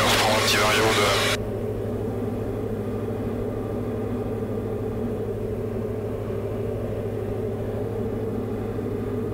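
A small plane's engine drones steadily inside the cabin.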